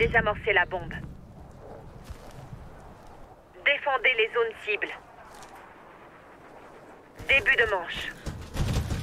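A man talks into a microphone in short bursts, with animation.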